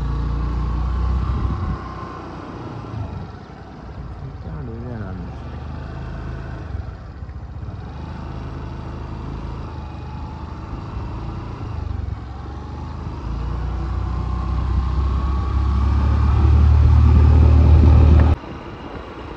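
A car rumbles steadily along a road, heard from inside.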